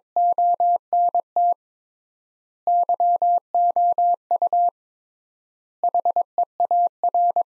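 A telegraph key taps out Morse code in quick, steady beeps.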